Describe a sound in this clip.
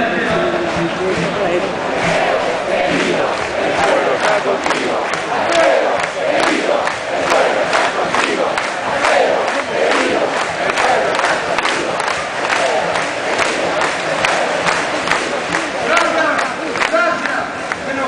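A crowd claps in rhythm.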